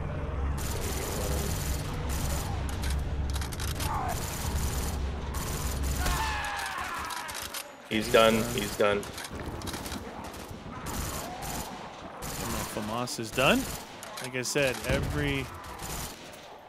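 Zombies growl and snarl nearby.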